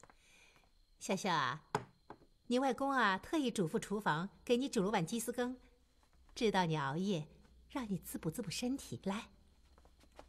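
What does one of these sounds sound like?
An older woman speaks warmly and calmly, close by.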